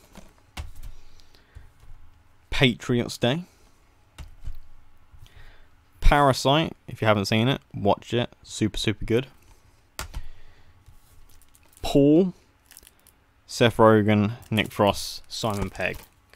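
Plastic disc cases click and rustle in a hand.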